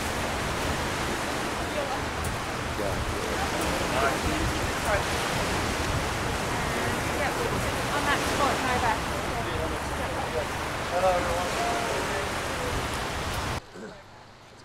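Small waves wash onto the shore.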